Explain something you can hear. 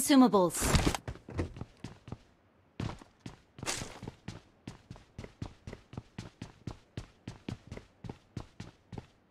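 Footsteps patter quickly across a hard floor.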